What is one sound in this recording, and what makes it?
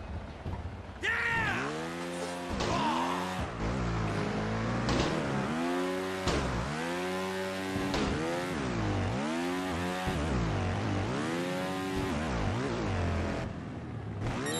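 A motorcycle engine revs up and down repeatedly.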